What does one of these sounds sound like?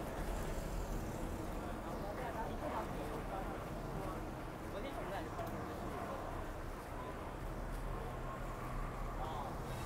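A bus engine idles and rumbles nearby.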